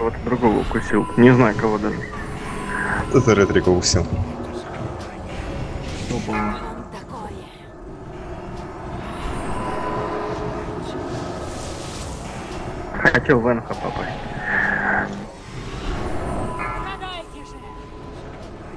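Spell effects crackle and whoosh in a game battle.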